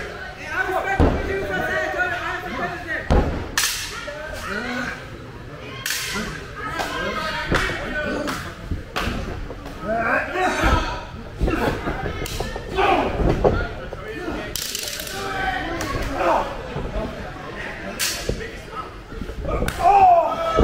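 Wrestlers' bodies thump and slap, and the ring boards boom.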